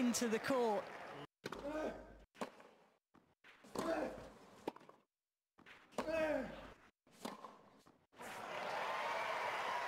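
A tennis ball is struck hard with a racket.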